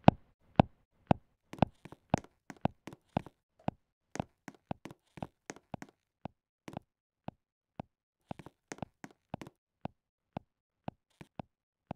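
Footsteps tap quickly and steadily on a hard surface.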